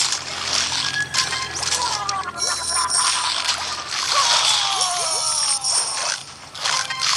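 Bright chiming tones ring out as points are scored.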